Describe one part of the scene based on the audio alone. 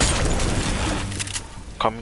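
A pickaxe strikes with a sharp thud.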